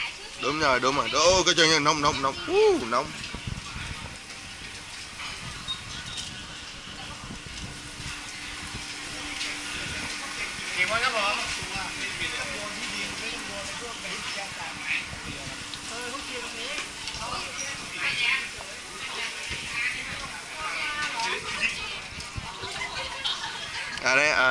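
A crowd chatters all around in a busy open-air space.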